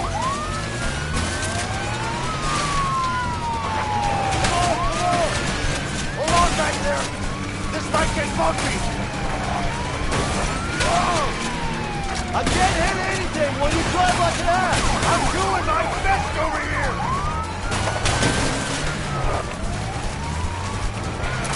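Police sirens wail, rising and falling.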